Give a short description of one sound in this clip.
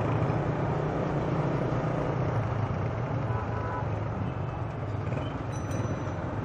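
A motorcycle engine hums steadily up close while riding.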